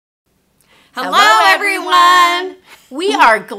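Two middle-aged women cheerfully call out a greeting together, close to a microphone.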